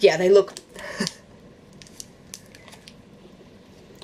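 A young woman bites and chews a crunchy snack close to a microphone.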